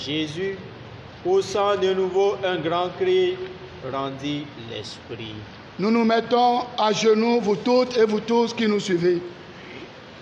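A man sings a chant into a microphone, echoing slightly in a hall.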